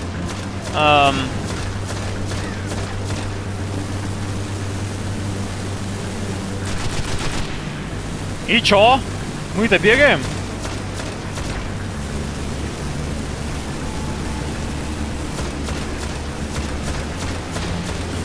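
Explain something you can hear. Rapid gunshots crack in short bursts.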